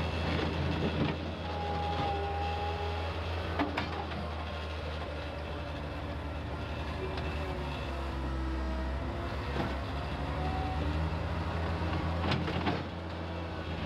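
A loader bucket scrapes and clanks over gravel and dirt.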